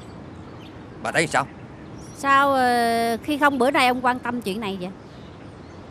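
A woman speaks tearfully and pleads, close by.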